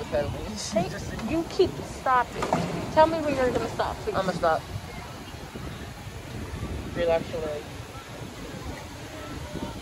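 Water laps gently against a pedal boat.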